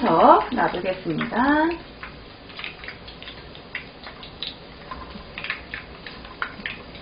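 Hot oil sizzles and crackles steadily as food fries.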